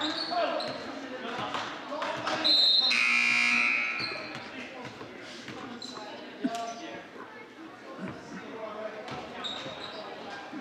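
A crowd murmurs and chatters in an echoing gym.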